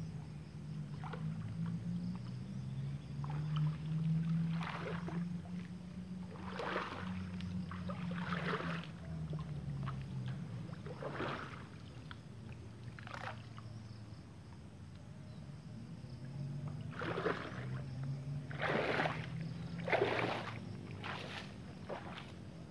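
Water splashes loudly in bursts.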